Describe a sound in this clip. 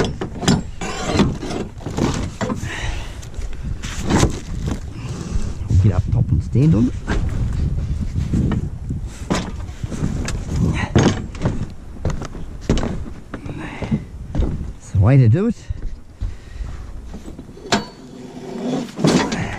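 Rubbish bags and plastic rustle inside a bin.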